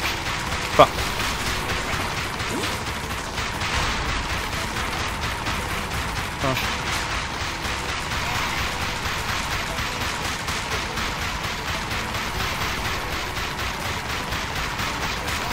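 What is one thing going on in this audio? A gun fires rapid shots in quick bursts.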